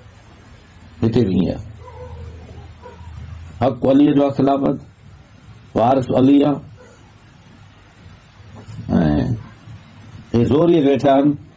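An elderly man speaks in short, emphatic bursts with long pauses.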